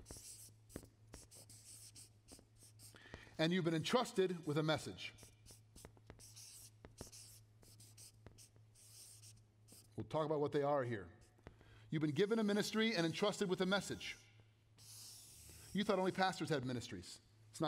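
A marker squeaks and taps on a paper board.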